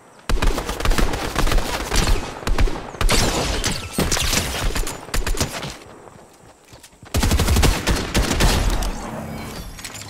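Rapid gunfire bursts loudly in quick volleys.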